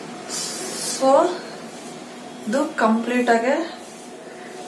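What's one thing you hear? A young woman speaks briefly and close by.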